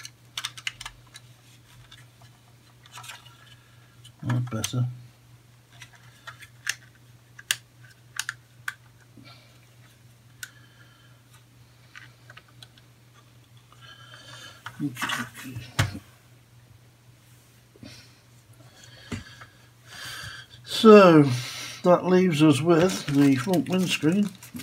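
Small plastic parts click and rattle as they are handled.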